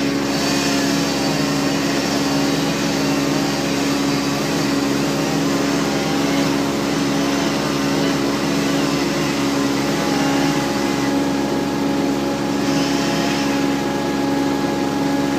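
A small engine hums steadily nearby.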